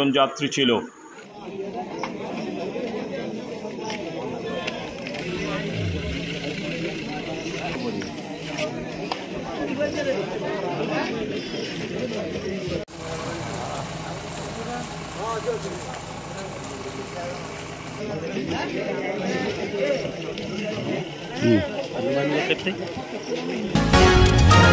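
A crowd of men and women murmurs and talks outdoors.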